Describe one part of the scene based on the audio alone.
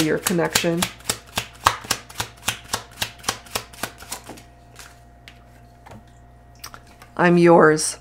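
Playing cards are shuffled and laid down on a table.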